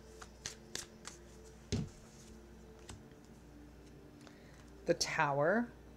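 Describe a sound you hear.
Packaging crinkles and rustles in a woman's hands.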